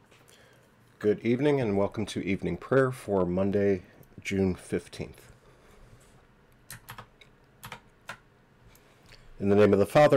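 A middle-aged man speaks calmly and clearly into a nearby microphone, as if reading aloud.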